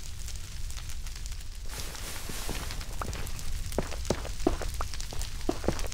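Lava bubbles and pops.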